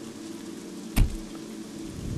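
A car door slams shut.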